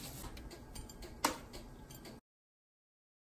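Metal tongs clink against a baking tray.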